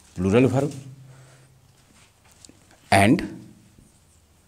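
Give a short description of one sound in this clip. A man speaks loudly in short bursts, with a slight room echo.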